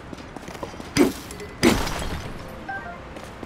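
A heavy hammer smashes into rock with loud cracking blows.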